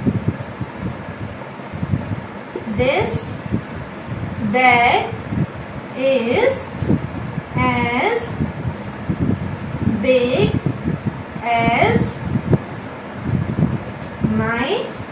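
A young woman speaks calmly, explaining.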